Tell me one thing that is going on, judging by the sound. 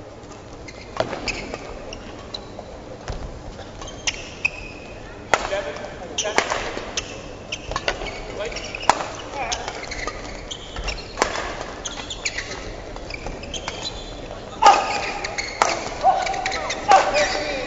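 A badminton racket strikes a shuttlecock back and forth.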